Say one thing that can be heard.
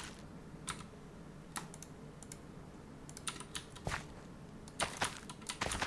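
Short soft clicks sound now and then.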